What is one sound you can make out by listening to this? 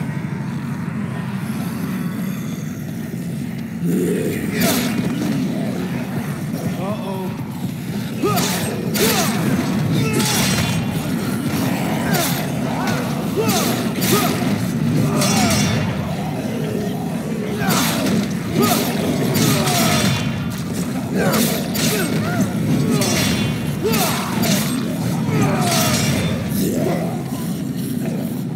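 Zombies groan and moan in a crowd.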